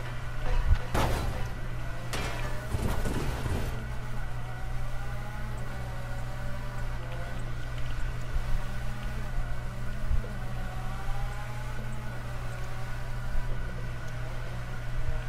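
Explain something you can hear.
A rotary-engined sports car revs hard while drifting.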